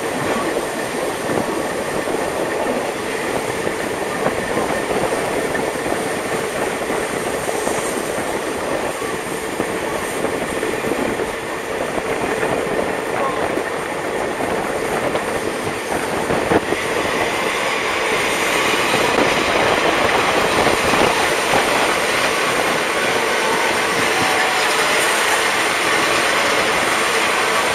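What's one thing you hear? A train carriage rattles and rumbles steadily along the track.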